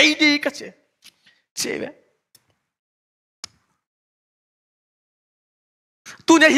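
A young man speaks calmly into a microphone, with pauses between phrases.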